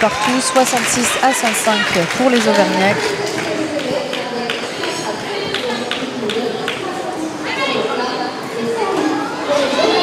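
Roller skates roll and clatter across a hard floor in an echoing hall.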